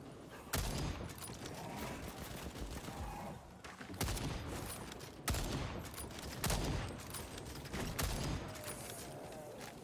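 A rifle fires loud, sharp shots with a booming echo.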